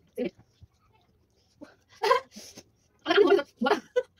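A young woman slurps noodles.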